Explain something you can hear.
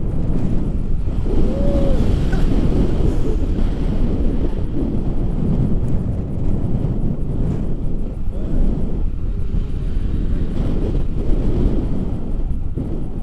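Wind rushes and buffets loudly past.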